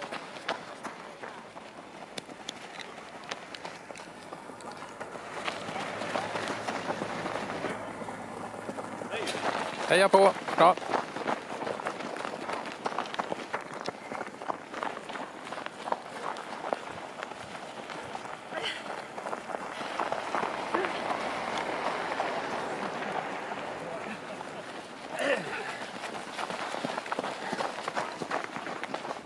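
Running footsteps crunch on packed snow.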